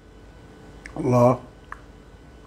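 A man hums loudly with pleasure, close by.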